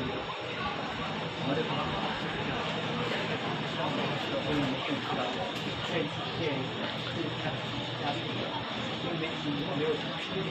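A crowd of men and women murmur and chatter nearby.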